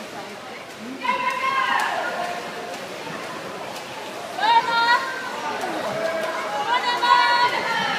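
Spectators shout and cheer, echoing around an indoor pool.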